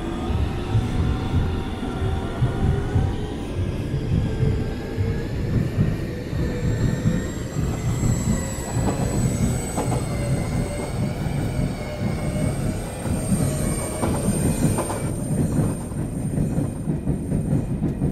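A train carriage rumbles and rattles steadily as it runs.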